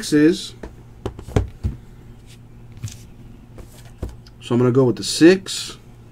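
A cardboard box is handled and slid across a mat.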